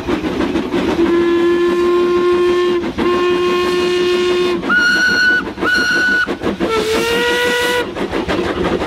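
Steam whistles blow loudly several times.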